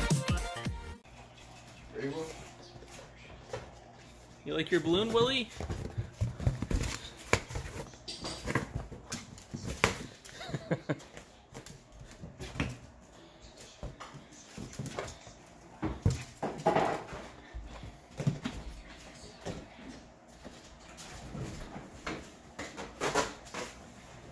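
A small dog's paws patter and scrabble across the floor.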